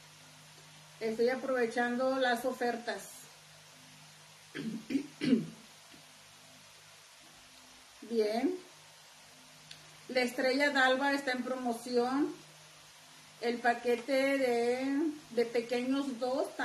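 A middle-aged woman talks calmly and close by, with pauses.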